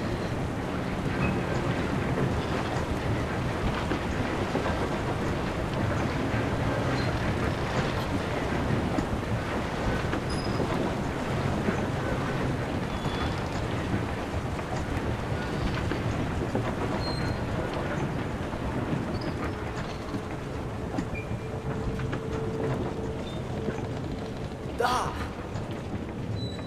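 Water rushes steadily down a waterfall.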